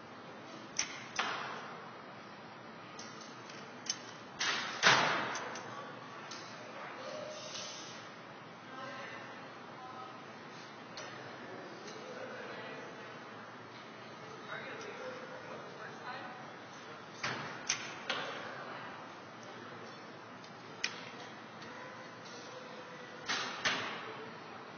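A bowstring snaps sharply as an arrow is shot, indoors with a slight echo.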